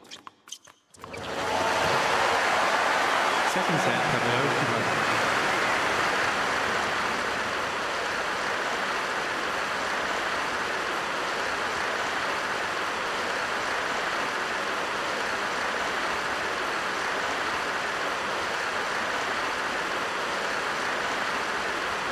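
A crowd applauds and cheers in a large arena.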